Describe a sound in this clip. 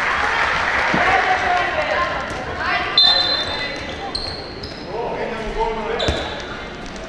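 A ball bounces on the court with a thud.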